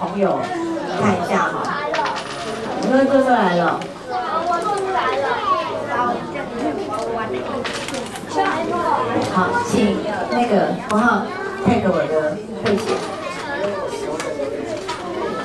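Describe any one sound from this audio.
A woman speaks calmly through a headset microphone in a room with a slight echo.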